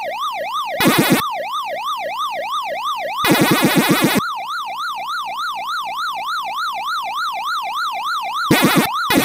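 A retro arcade game plays a rising and falling electronic siren that repeats steadily.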